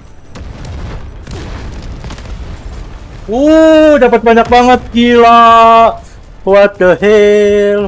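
Rapid gunfire cracks in short bursts.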